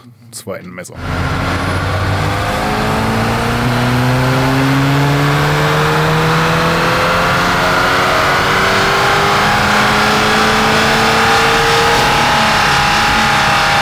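A car engine roars and revs higher and higher on a test rig.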